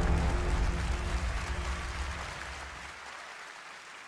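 A large crowd cheers in an echoing hall and slowly fades.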